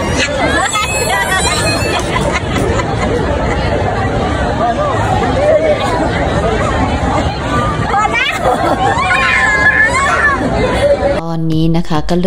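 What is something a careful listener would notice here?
Young children laugh and squeal close by.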